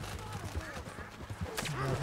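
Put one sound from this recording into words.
Hooves splash through shallow water.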